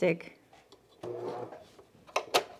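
A sewing machine hums briefly.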